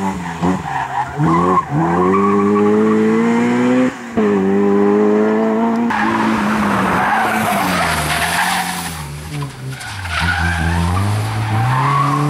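A car engine revs hard and high, rising and dropping as the car accelerates and shifts gears.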